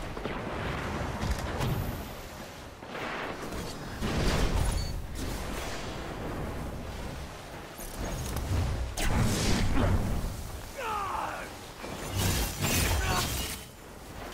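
Gunshots and explosions from a video game ring out.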